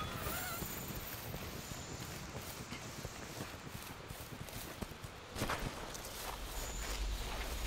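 Footsteps run quickly over grass and leaves.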